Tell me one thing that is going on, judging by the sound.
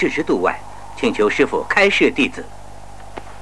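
A young man speaks respectfully.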